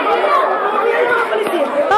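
A woman shouts angrily up close.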